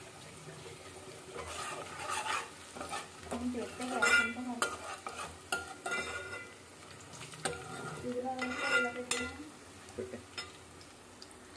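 A metal spoon scrapes and clinks against a steel pan.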